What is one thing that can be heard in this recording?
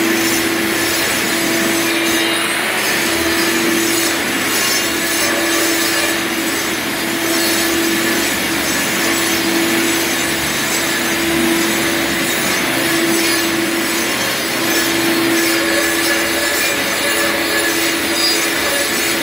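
An angle grinder whines loudly and grinds across a concrete floor.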